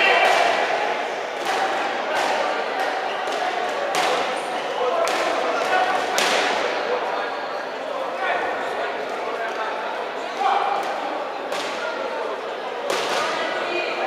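Boxing gloves thud on a boxer's body in quick blows.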